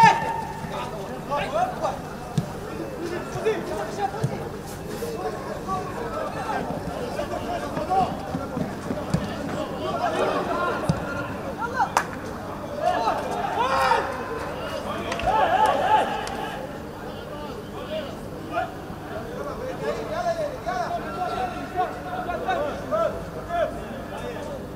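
A football is kicked with dull thuds on a grass pitch.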